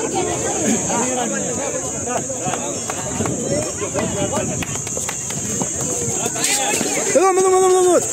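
A crowd of children and adults chatter and call out outdoors.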